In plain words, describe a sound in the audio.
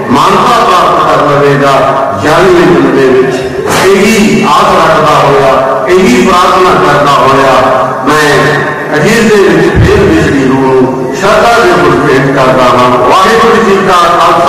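An elderly man speaks slowly and earnestly into a microphone, heard through a loudspeaker.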